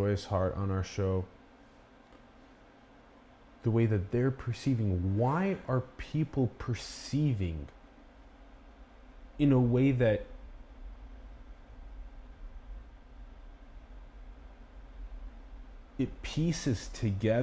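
A man speaks calmly and expressively close to a microphone, in short bursts with pauses.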